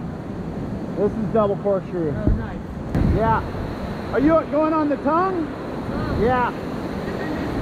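A man calls out nearby outdoors.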